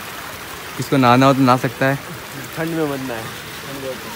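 Water splashes from small fountains.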